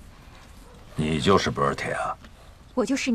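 A middle-aged man asks a question calmly.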